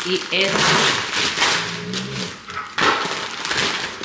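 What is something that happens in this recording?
A paper bag crackles as it is torn open.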